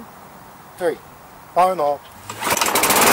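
A lawn mower's pull cord is yanked several times.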